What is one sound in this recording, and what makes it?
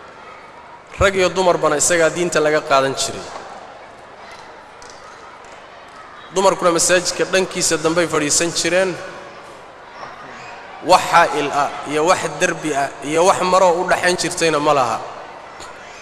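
A man preaches loudly into a microphone, in bursts with pauses, echoing in a large space.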